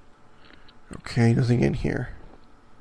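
A man speaks briefly and loudly into a headset microphone.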